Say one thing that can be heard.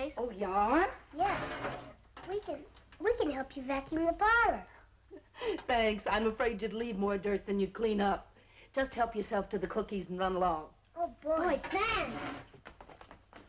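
A woman speaks warmly and with animation.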